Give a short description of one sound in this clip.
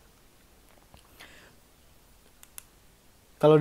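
A small plastic device clicks and taps as it is handled.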